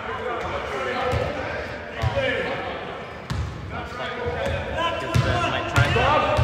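A basketball bounces on the hard court.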